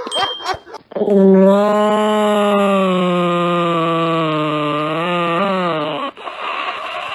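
A small dog howls in a long, wavering tone close by.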